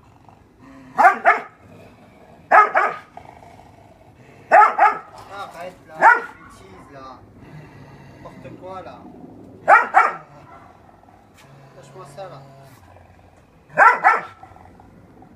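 A dog barks loudly in short, sharp bursts.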